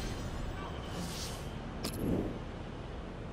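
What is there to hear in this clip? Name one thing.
A game menu whooshes as it changes.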